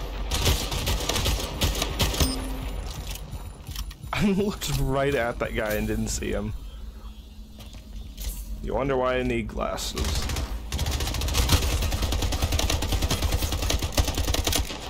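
Rapid video game gunfire rattles in bursts.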